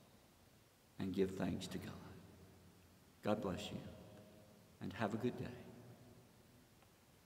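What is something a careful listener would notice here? An elderly man speaks calmly in a large echoing hall.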